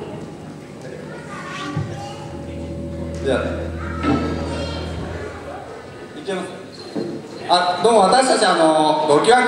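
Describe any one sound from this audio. A young man talks into a microphone, heard through loudspeakers in a large echoing hall.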